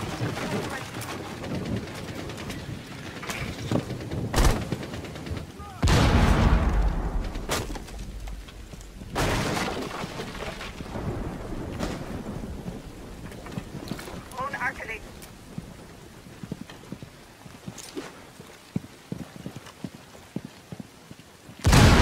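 Footsteps thud on wooden and hard floors.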